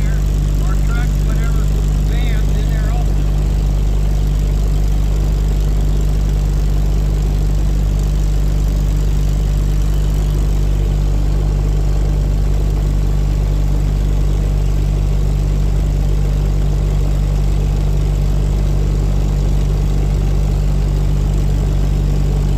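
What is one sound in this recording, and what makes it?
A small airplane's engine drones loudly and steadily from inside the cabin.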